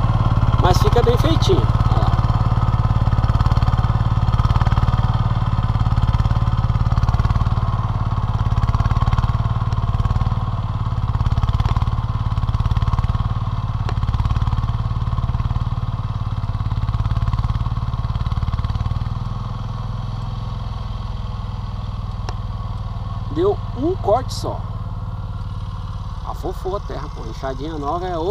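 A small tiller engine chugs steadily in the distance, growing fainter as it moves away.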